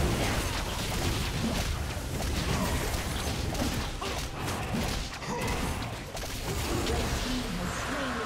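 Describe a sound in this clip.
Magic blasts and combat effects crackle and whoosh in a video game battle.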